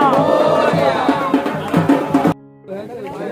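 A loud crowd chants together close by.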